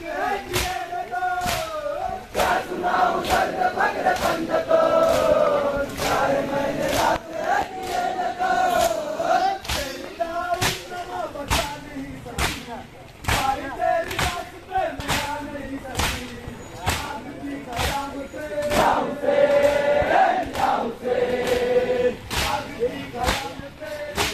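Men beat their chests with their hands in a steady rhythm.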